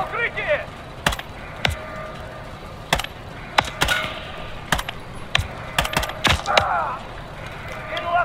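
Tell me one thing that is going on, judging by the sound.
A rifle fires single shots in short bursts.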